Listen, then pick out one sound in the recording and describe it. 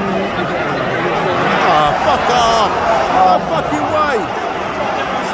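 Fans nearby shout with excitement.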